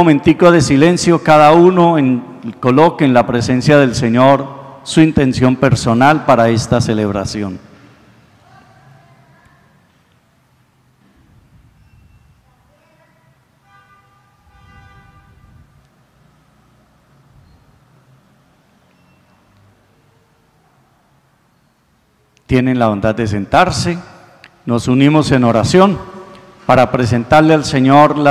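A man speaks into a microphone in a slow, measured voice in an echoing hall.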